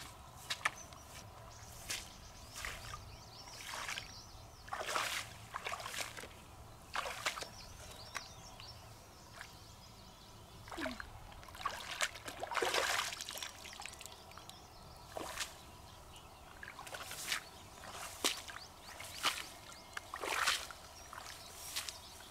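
Rubber boots squelch and splash through shallow water and wet grass.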